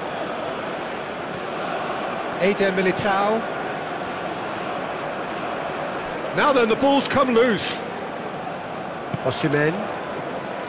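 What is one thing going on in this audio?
A large crowd murmurs and roars steadily in a stadium.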